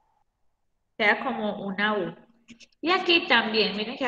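A woman speaks calmly to a microphone, close by.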